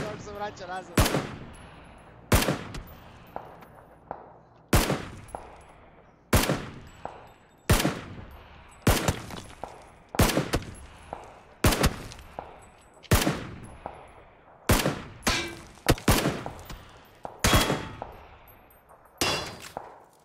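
Sniper rifle shots ring out one at a time, each followed by a rolling echo.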